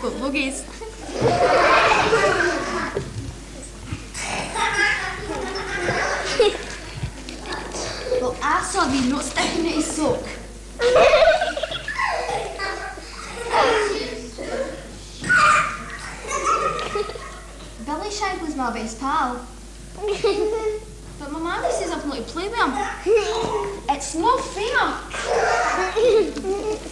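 A boy talks with animation.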